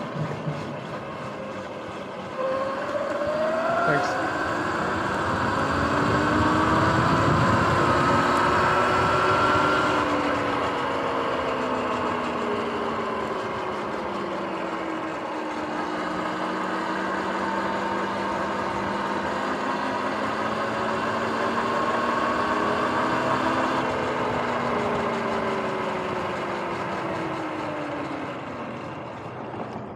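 Bike tyres hum on smooth pavement.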